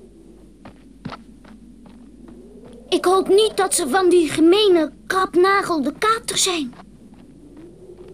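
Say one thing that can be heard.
Footsteps crunch softly in snow.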